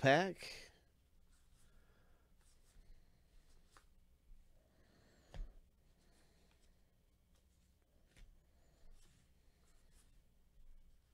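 Cardboard cards rustle and slide against each other as they are handled.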